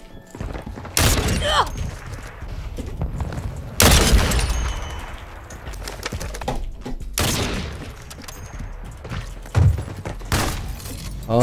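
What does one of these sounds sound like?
Loud rifle shots crack and echo.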